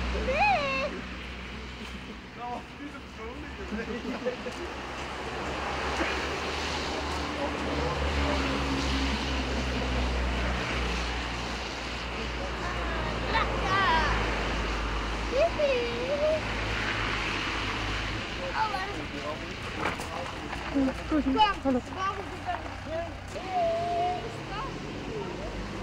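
Adults chatter nearby in a crowd outdoors.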